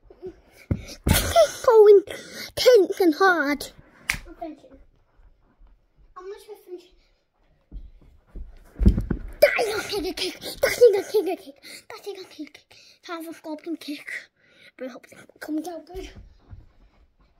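A young boy talks with animation close to the microphone.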